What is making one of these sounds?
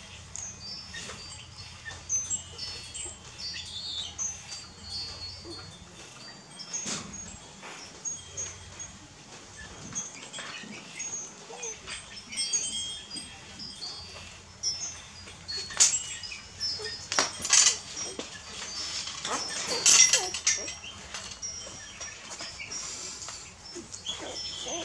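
Puppies squeak and whimper in high thin cries.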